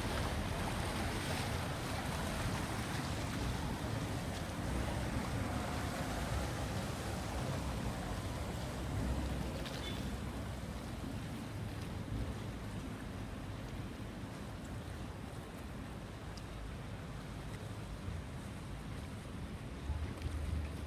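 A boat engine rumbles steadily close by.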